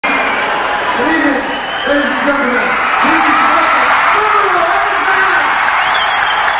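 A man sings loudly through a microphone.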